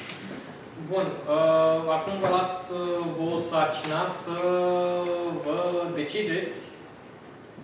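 A man speaks calmly to a room.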